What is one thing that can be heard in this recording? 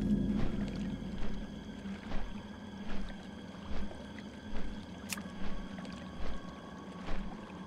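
Water splashes in a steady rhythm as a swimmer strokes through it.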